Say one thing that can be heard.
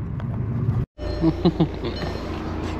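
A seatbelt buckle clicks open.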